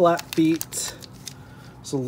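A small plastic bag crinkles in a hand.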